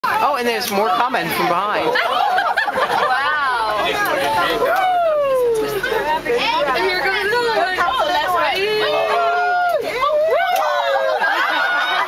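Apes call loudly from the treetops with rising and falling whooping cries.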